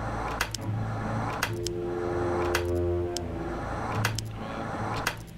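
Short clicks sound as game pieces are moved.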